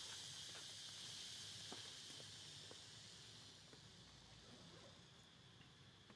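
An infant macaque suckles with faint wet clicks.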